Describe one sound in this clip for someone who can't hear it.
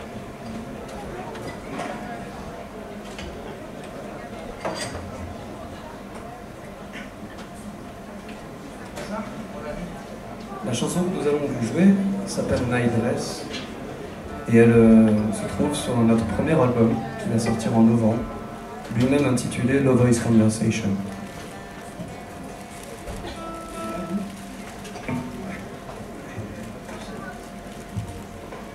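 An electric guitar strums softly.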